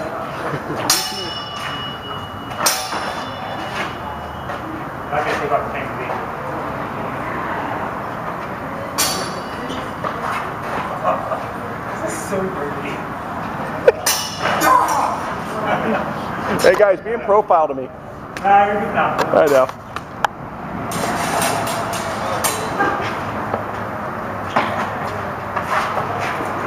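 Swords clash and clatter sharply.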